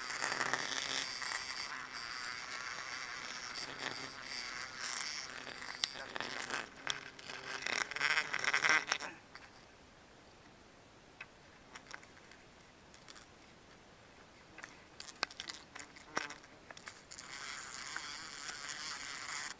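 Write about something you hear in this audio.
A plastic bottle crinkles and crackles in gloved hands.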